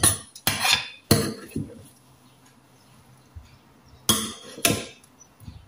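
A metal spoon scrapes and clinks against a dish.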